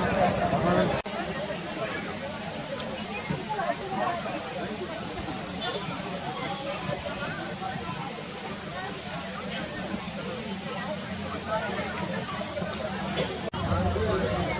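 A group of young women chatter and laugh nearby.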